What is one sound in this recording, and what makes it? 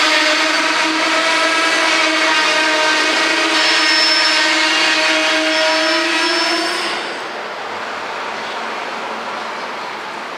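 A long freight train rolls slowly past, its wheels rumbling on the rails.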